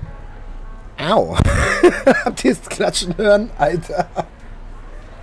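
A middle-aged man laughs loudly and talks close to a microphone.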